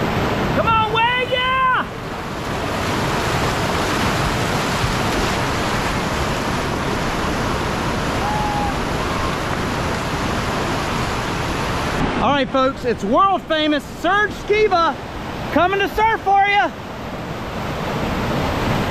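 Whitewater rushes and churns loudly.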